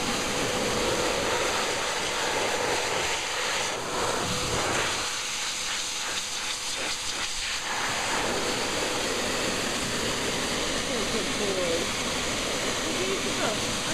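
A hair dryer blows with a loud, steady whoosh.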